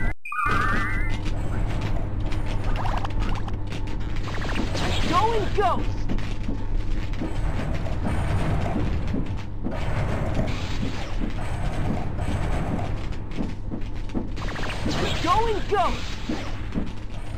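Upbeat electronic game music plays steadily.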